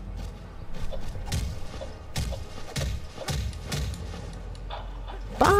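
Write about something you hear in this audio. Blows land with sharp thuds in a fight.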